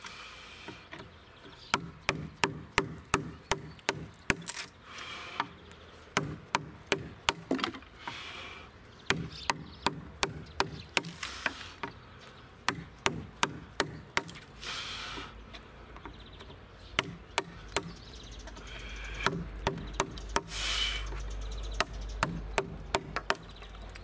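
A chisel pares and scrapes wood.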